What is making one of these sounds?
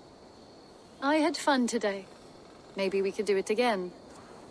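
A young woman speaks warmly and close by.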